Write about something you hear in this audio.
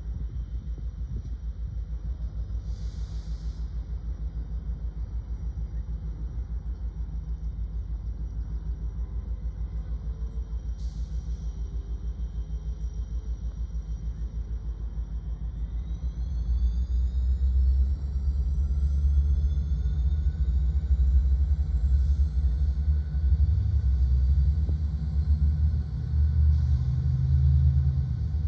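A diesel locomotive rumbles as it slowly approaches.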